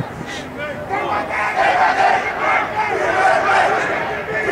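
Young players shout and cheer together.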